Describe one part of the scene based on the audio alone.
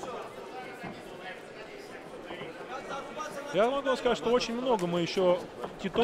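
A crowd murmurs and shouts in a large hall.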